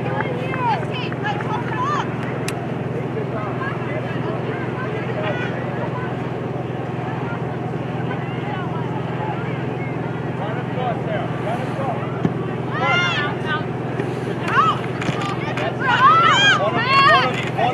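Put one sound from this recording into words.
Spectators shout and cheer outdoors at a distance.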